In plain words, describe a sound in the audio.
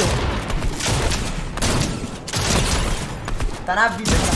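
Gunshots fire rapidly.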